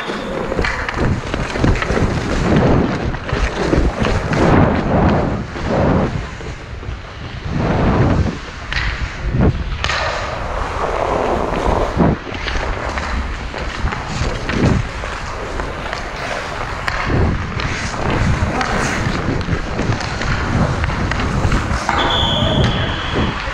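Ice skates scrape and carve across the ice.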